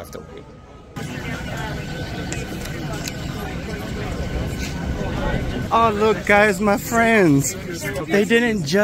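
A crowd of people chatters in a confined space.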